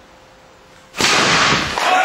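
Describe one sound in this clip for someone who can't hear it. A man breaks a stack of boards with a loud crack.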